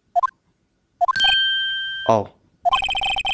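A sharp slap sounds, followed by a quick falling tone.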